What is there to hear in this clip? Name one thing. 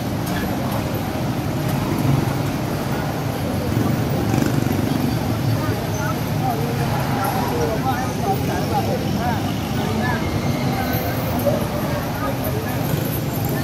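A large crowd murmurs in the distance outdoors.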